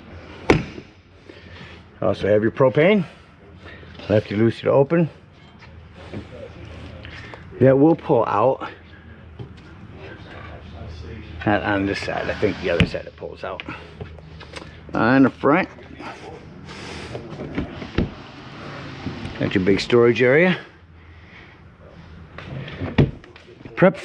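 A compartment door latch clicks.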